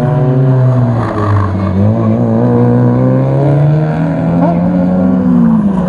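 A second car engine revs hard nearby.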